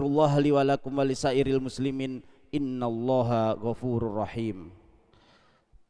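A man chants in a loud, melodic voice through a microphone in a large echoing hall.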